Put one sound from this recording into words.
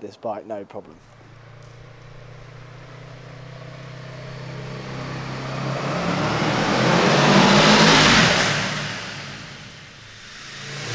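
A motorcycle engine approaches, roars past and fades, echoing in a tunnel.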